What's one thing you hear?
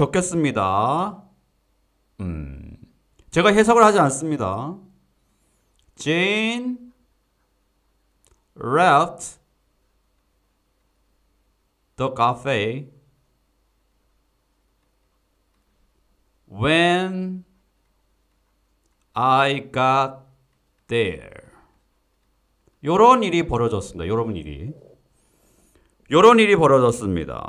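A young man speaks calmly into a close microphone, in short phrases with pauses.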